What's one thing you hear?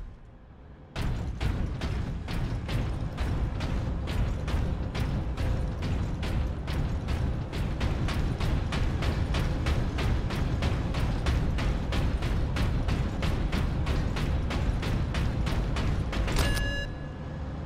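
Heavy armoured footsteps thud steadily on a metal floor.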